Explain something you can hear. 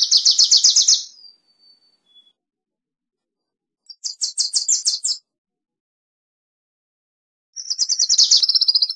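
A small bird sings close by in quick, buzzy trilling bursts with silent pauses between them.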